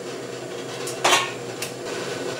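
A metal lid clanks.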